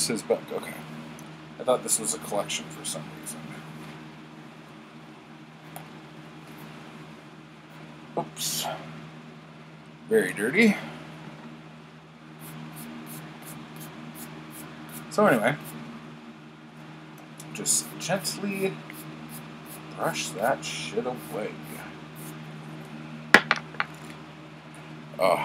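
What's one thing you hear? A middle-aged man speaks with animation close to a microphone.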